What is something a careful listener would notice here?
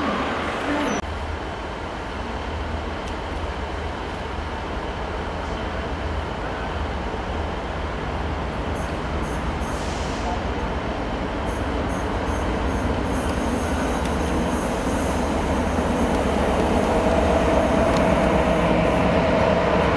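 A diesel locomotive engine drones low and grows louder as it approaches.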